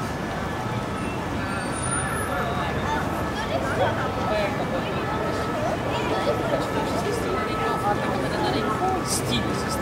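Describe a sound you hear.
A steady low rumble of distant city traffic carries outdoors.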